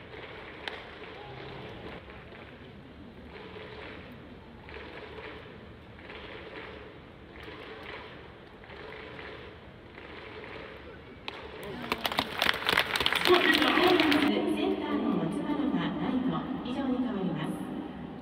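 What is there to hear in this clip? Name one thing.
Players clap their hands in rhythm in a large open stadium.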